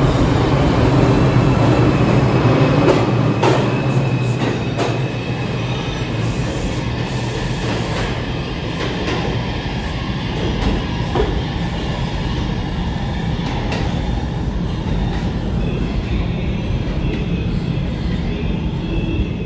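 A subway train rumbles away through an echoing tunnel and slowly fades.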